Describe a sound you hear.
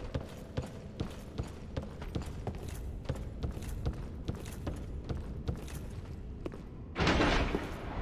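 Armoured footsteps clank quickly on wooden boards.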